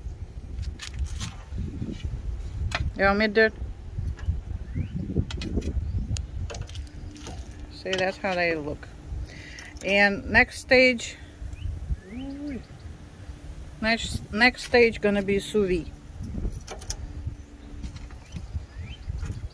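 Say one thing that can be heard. Metal tongs clack against a grill grate.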